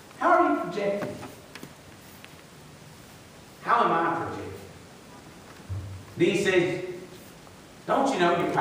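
A middle-aged man preaches through a microphone in bursts, with pauses, in a room with a slight echo.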